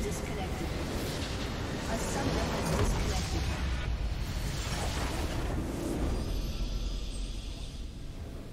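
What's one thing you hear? A huge explosion booms and crackles.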